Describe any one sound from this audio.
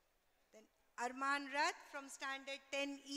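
A woman speaks loudly through a microphone.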